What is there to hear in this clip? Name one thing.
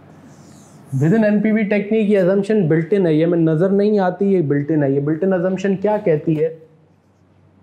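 A man speaks calmly and clearly, close by, like a teacher explaining.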